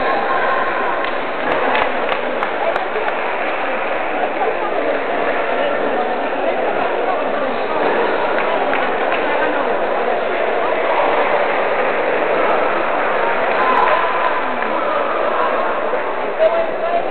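A crowd of players chatters in a large echoing hall.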